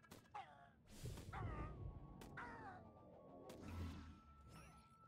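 A shimmering magical burst swells and fades.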